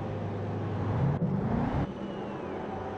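A racing car engine revs up sharply and pulls away.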